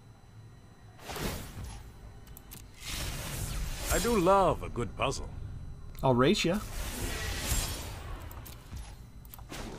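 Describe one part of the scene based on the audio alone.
Magical whooshing effects swell and fade away.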